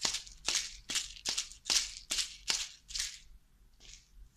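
A seed shaker rattles in quick, even shakes, then stops.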